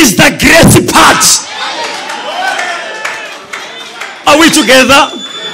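A man preaches forcefully through a microphone in a large echoing hall.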